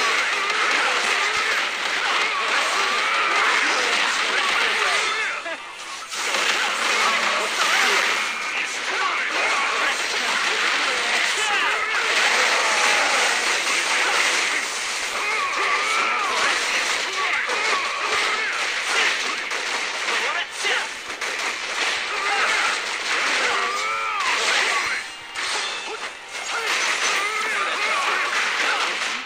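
Game fight effects crash and whoosh with rapid hits.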